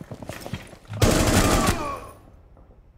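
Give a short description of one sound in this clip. A rifle fires a rapid, loud burst of shots.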